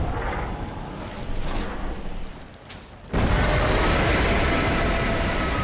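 Magic explosions boom and crackle in a battle.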